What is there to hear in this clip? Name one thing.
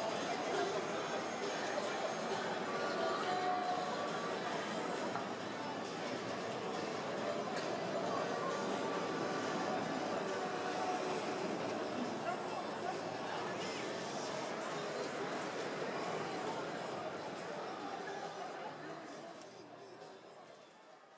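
A band plays loud live music through big speakers, then fades out.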